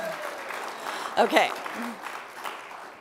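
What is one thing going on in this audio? A woman laughs into a microphone.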